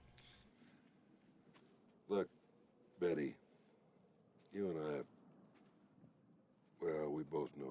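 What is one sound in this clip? An older man speaks gravely into a phone, heard close by.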